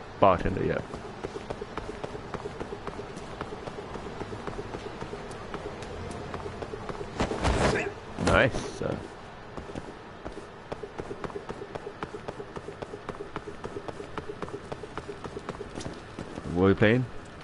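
Quick footsteps run on hard pavement.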